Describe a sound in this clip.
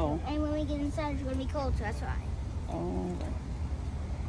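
A young girl talks in a high voice nearby.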